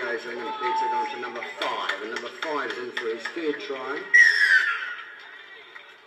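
Spectators shout and cheer excitedly outdoors.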